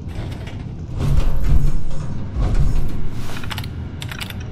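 A computer terminal hums and whirs as it starts up.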